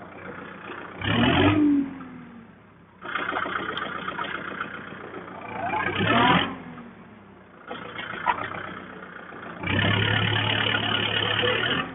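A tractor engine revs up loudly.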